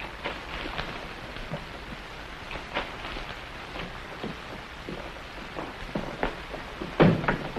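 Objects knock and clatter as a man rummages through debris.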